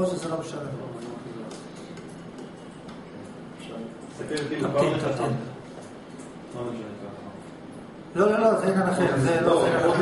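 A young man speaks calmly into a close microphone, with pauses.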